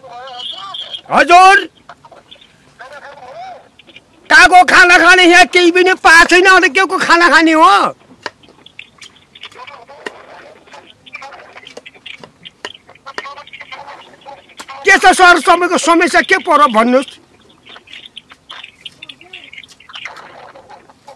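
An elderly man talks loudly and with animation on a phone, close by.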